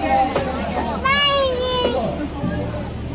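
A toddler squeals in a high voice, close by.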